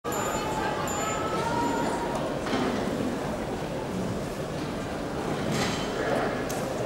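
A large crowd of men and women chatters and murmurs outdoors.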